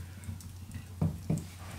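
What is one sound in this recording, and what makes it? A hammer taps on wood twice.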